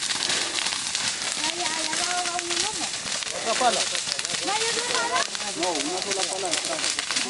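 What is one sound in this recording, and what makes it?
A fire crackles and pops loudly.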